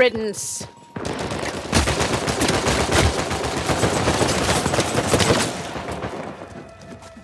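Gunshots crack rapidly one after another.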